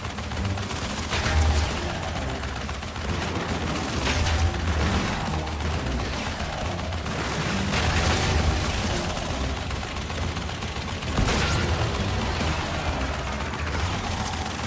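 Propeller plane engines drone steadily.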